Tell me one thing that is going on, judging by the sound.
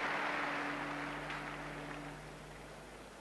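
A large crowd cheers in a stadium, then fades.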